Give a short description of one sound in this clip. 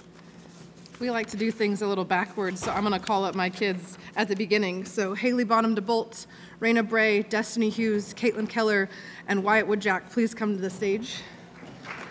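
A woman reads out through a microphone in a large echoing hall.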